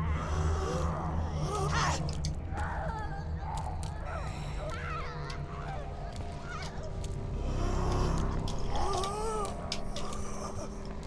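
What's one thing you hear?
A creature groans and moans in a low, rasping voice.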